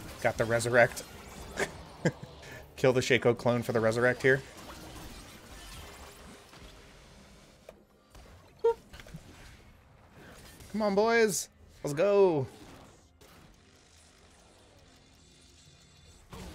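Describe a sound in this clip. Game spell effects crackle and whoosh.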